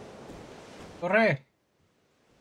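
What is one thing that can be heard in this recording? A young man speaks briefly and loudly into a close microphone.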